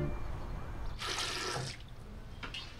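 Water runs briefly from a tap.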